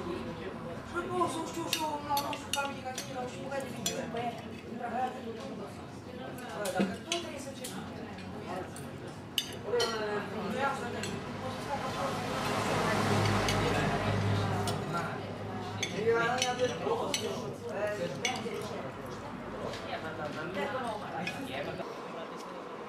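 Men and women chat in a lively murmur around a table.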